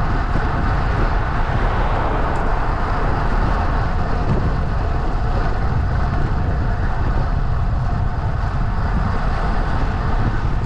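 Small wheels roll steadily and rumble over rough asphalt.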